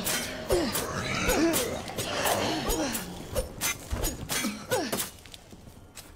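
A knife slashes and stabs into flesh with wet thuds.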